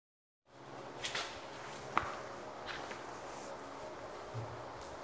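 Shoes scuff and tap on a hard floor.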